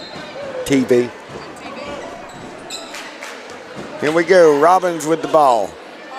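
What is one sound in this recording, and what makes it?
A crowd murmurs in a large echoing gym.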